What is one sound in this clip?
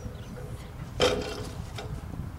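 A seesaw plank bangs down once.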